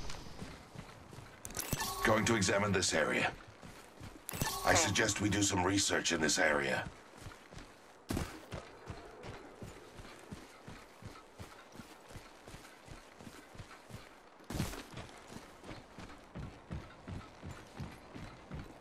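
Footsteps patter quickly and steadily over the ground.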